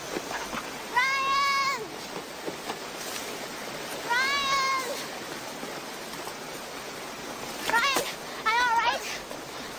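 A girl calls out loudly from a distance.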